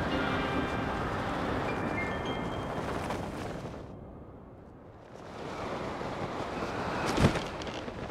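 Wind rushes loudly past during a fast free fall.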